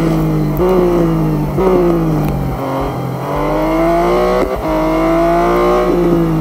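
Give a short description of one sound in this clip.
A race car engine roars at high revs, its pitch rising and dropping with each gear change.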